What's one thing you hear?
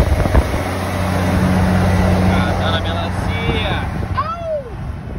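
A truck's engine drones loudly alongside.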